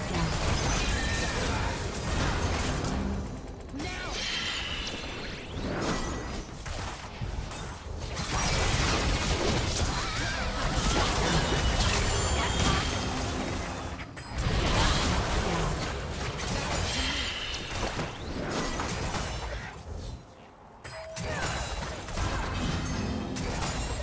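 Video game spells whoosh and burst during a fight.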